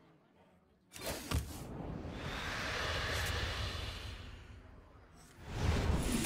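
A magical whooshing effect swells and fades as a card is played.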